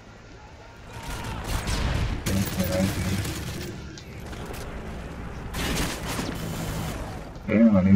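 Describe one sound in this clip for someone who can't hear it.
Rifle shots crack in quick bursts.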